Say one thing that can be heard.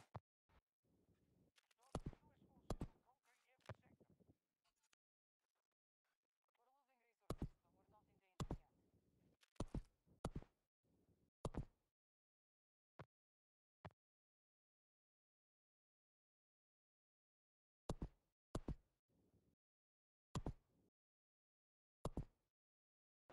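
Menu clicks sound sharply as options change.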